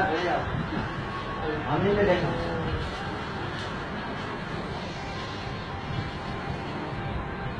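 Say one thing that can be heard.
Men murmur in the background.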